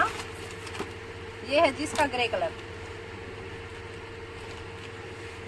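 Fabric rustles as cloth is unfolded.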